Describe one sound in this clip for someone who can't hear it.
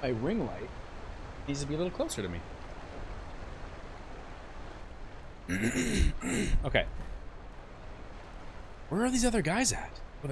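A man speaks with animation into a close microphone.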